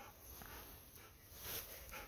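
A dog crunches on something with its teeth.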